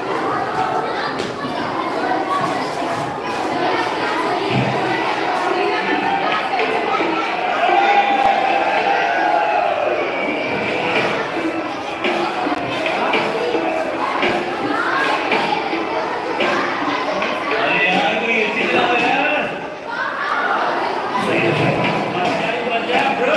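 Young girls sing together loudly and close by.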